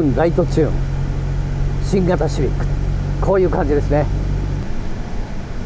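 A car engine idles with a steady low hum, then stops.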